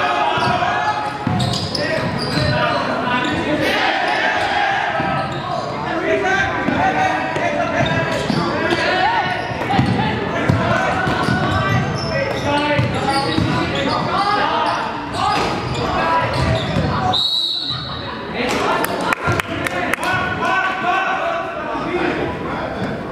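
A crowd of spectators chatters and calls out loudly in an echoing gym.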